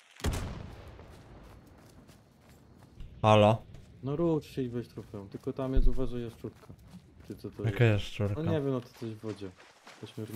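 Footsteps crunch on forest ground.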